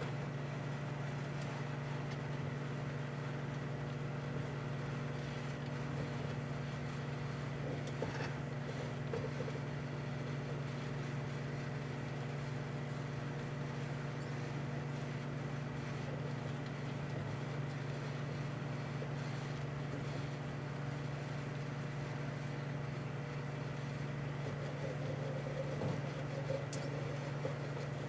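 A microwave oven hums steadily as it runs.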